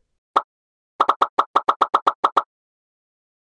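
Short bright electronic beeps repeat quickly.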